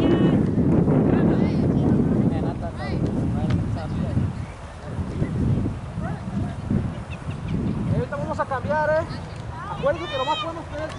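Children shout and call out across an open field.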